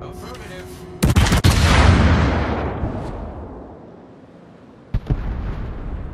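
Heavy ship guns fire with loud booming blasts that rumble away.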